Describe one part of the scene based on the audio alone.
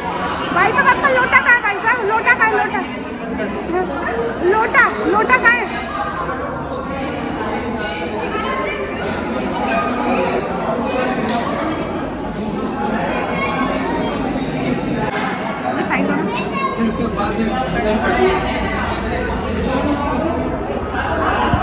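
Many people chatter in a large echoing hall.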